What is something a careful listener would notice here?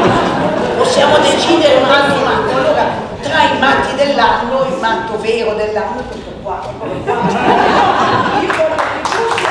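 A woman speaks into a microphone over loudspeakers in a large echoing room.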